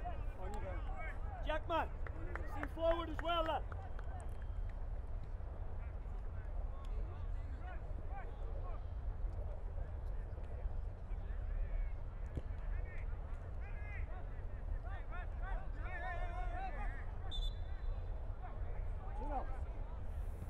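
Young men shout calls to each other across an open field.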